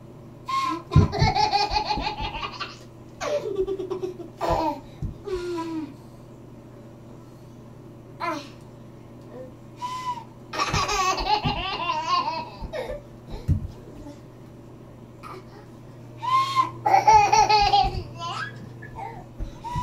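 A toddler squeals and laughs.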